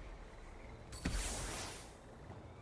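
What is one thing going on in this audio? A whooshing transition sound sweeps in.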